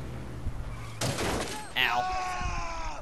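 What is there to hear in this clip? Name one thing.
A motorbike crashes with a loud thud.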